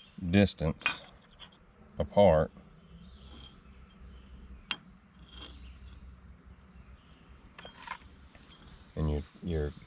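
Metal plates clink against metal.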